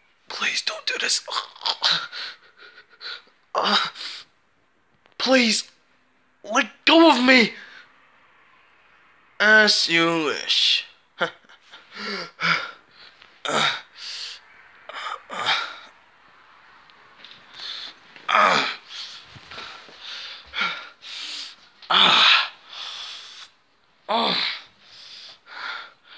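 A young man talks close by, in a strained, groaning voice.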